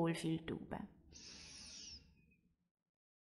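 A woman breathes out slowly.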